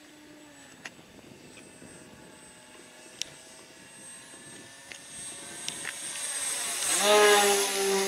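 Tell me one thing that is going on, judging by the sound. A small propeller plane's engine drones overhead, growing louder as it nears.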